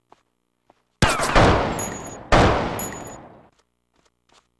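A pistol fires two loud shots indoors.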